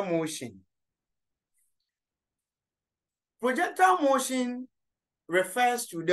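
A man speaks calmly and clearly, close to a microphone, with pauses between phrases.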